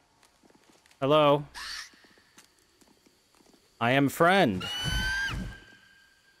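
A large eagle shrieks loudly several times.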